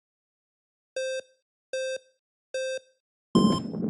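Electronic beeps count down at an even pace.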